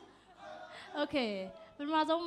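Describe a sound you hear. A young woman shouts and cheers loudly.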